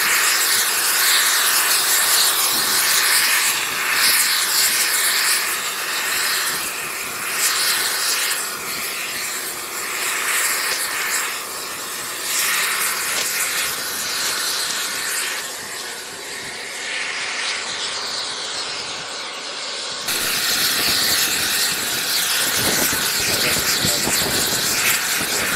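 Wind blows hard across an open outdoor space.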